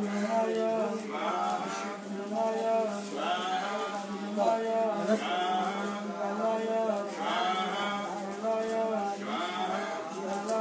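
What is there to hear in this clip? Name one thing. A man chants a steady, repeating prayer in a rhythmic singsong voice.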